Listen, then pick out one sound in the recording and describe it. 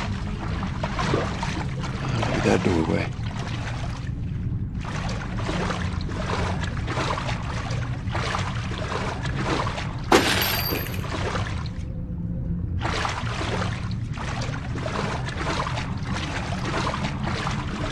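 Water sloshes and splashes as someone wades through it.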